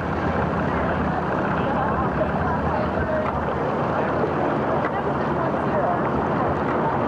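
Water splashes around a pedal-powered craft.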